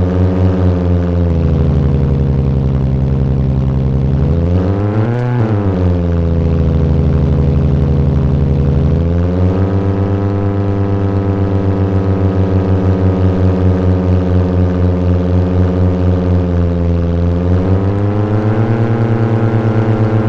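A simulated hatchback car engine revs and shifts through gears as the car drives.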